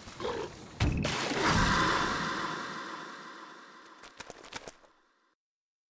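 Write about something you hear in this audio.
A loud explosion bursts with a wet splatter, then rumbles and fades.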